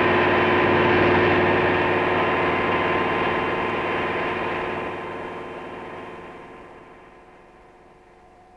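A helicopter roars close overhead, then fades away.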